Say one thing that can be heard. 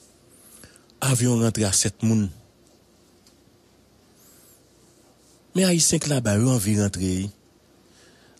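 A young man speaks loudly and emphatically close to a microphone.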